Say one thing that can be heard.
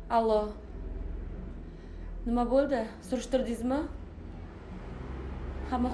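A young woman talks on a phone nearby, speaking calmly.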